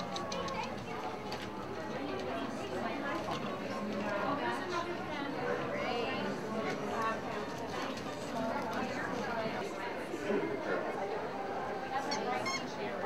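A crowd of people chatters indoors in the background.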